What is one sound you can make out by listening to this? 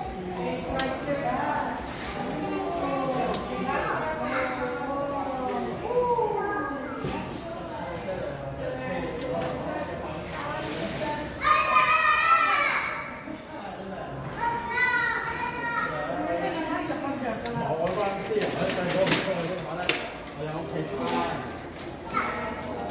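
A man and a woman talk nearby in a large echoing hall.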